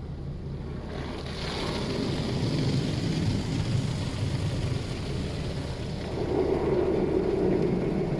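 Spinning brushes swish and slap against a windscreen.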